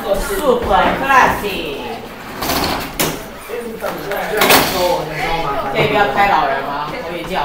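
Teenage students chatter and murmur nearby.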